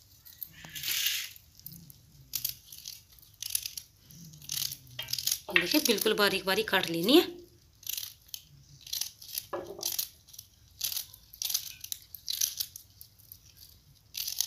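A knife cuts through a vegetable with soft clicks.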